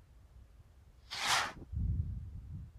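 A small rocket launches with a sharp rushing hiss.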